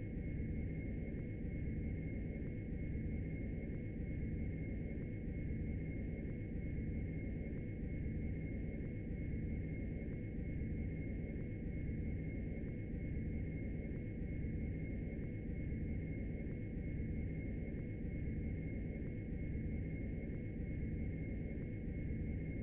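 A jet engine roars steadily with a high whine.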